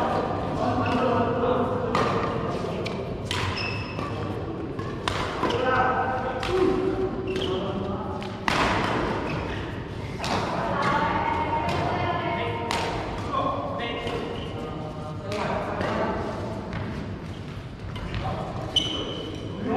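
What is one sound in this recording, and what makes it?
Badminton rackets hit a shuttlecock with sharp pops in a large echoing hall.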